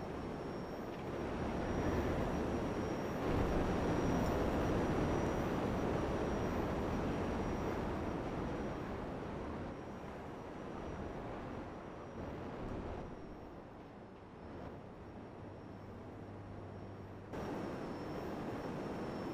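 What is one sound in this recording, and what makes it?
A jetpack roars steadily as it flies through the air.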